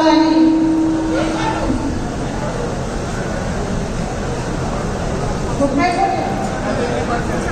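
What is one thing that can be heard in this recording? A woman speaks with animation through a microphone and loudspeakers.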